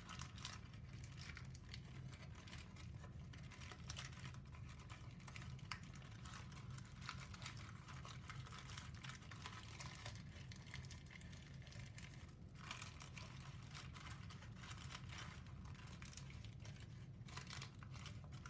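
Stiff paper crinkles and rustles as it is folded by hand.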